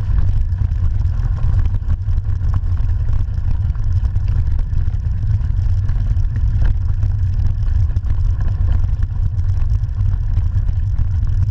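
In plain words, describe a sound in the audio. Bicycle tyres crunch and rattle over a gravel track.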